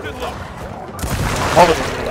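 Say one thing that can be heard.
A loud explosion bursts with a deep rumble.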